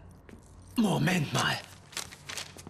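A man speaks in a low voice.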